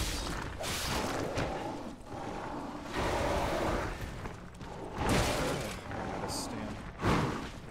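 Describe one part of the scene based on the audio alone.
Heavy blows thud and crash.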